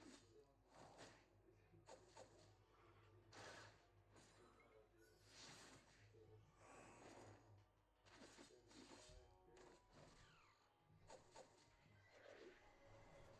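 Game battle effects clash and burst in quick bursts.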